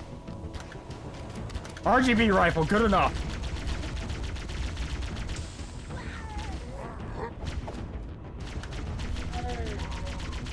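An energy weapon fires rapid crackling shots.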